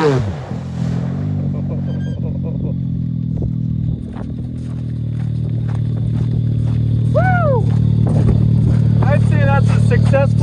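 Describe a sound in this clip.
A turbocharged side-by-side UTV engine idles.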